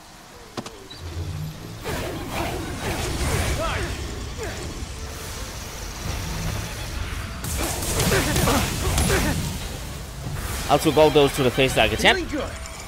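Game gunfire and blasts crackle and boom.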